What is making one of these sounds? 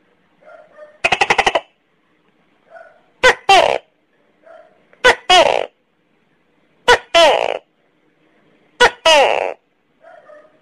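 A gecko gives a loud, croaking two-part call again and again.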